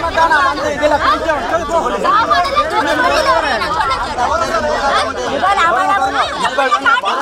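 Several men shout and argue excitedly outdoors, close by.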